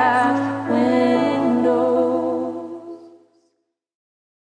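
A young woman sings close to a microphone.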